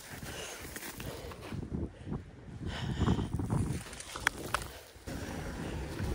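Footsteps crunch through packed snow and ice.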